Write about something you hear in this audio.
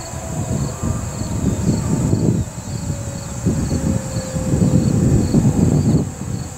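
A warning siren slowly winds down in the distance.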